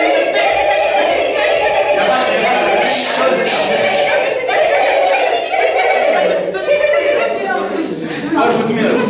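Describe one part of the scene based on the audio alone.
Young women laugh and chatter with excitement.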